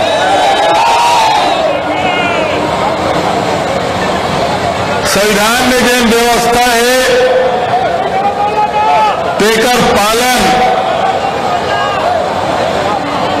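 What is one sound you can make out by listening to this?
A middle-aged man speaks forcefully into microphones, heard through loudspeakers outdoors with echo.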